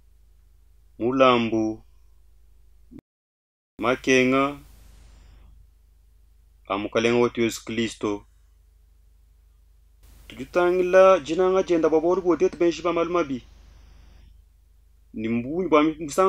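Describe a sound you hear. A man speaks slowly and solemnly into a close microphone, with pauses between phrases.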